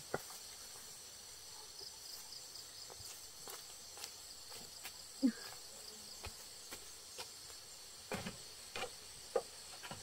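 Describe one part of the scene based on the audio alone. Small objects knock and clatter.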